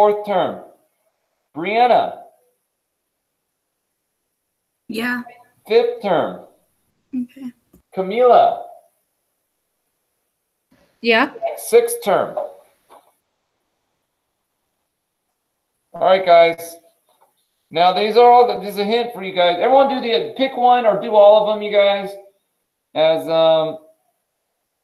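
A man speaks calmly in short phrases close to the microphone.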